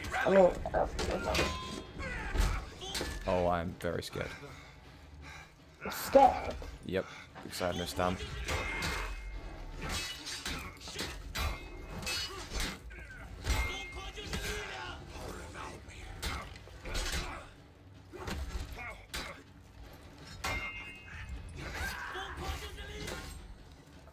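Swords clash and clang against shields.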